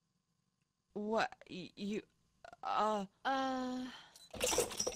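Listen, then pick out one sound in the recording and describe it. A woman speaks in a flat, strained voice.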